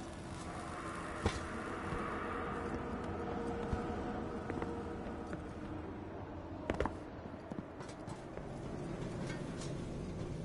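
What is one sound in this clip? Footsteps clatter on metal stairs.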